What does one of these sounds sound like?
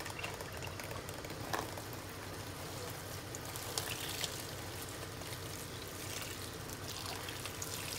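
Water pours from a jug into a sink.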